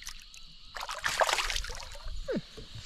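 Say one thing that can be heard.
A fish splashes in water.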